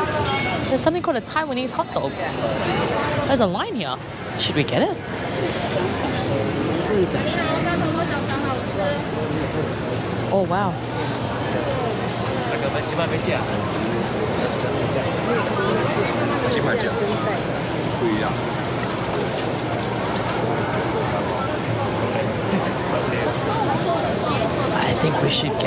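A crowd chatters and murmurs all around outdoors.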